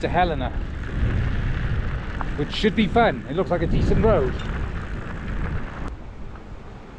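Bicycle tyres crunch over gravel.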